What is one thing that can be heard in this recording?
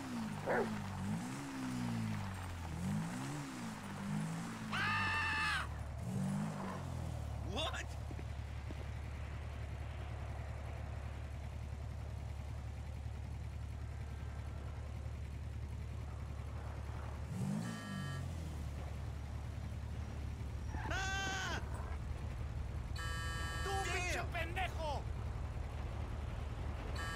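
A motorbike engine revs up and down, then idles with a steady low rumble.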